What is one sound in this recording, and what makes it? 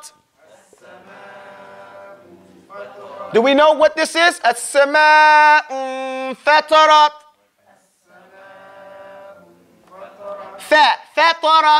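A man recites in a drawn-out, chanting voice.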